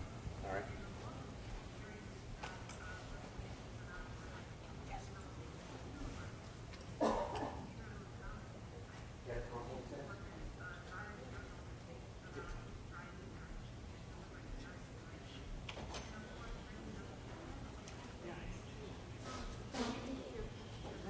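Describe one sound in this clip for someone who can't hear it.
A middle-aged man speaks calmly through a microphone in a large room.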